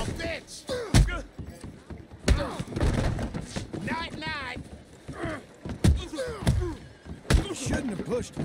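Fists land heavy punches on a man.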